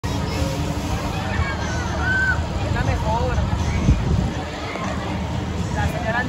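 A fairground ride whirs and rumbles as it spins.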